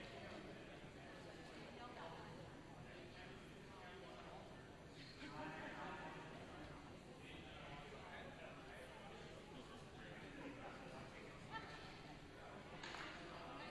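Several people talk with one another in the distance, in a large echoing hall.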